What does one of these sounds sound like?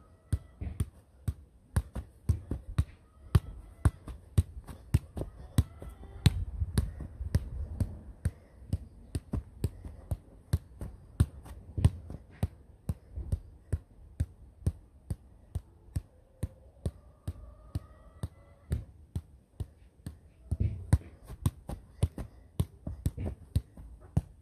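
A football thumps rhythmically against a foot as it is juggled.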